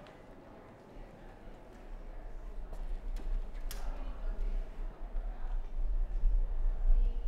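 Suitcase wheels roll across a wooden floor.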